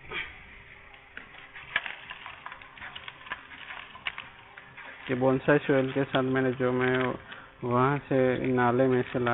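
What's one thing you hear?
Soil rustles and crumbles as a hand scrapes it in a clay pot.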